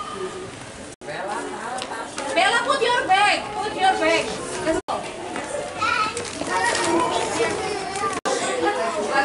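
Young children chatter and call out nearby.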